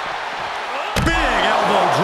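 A body slams hard onto the floor with a heavy thud.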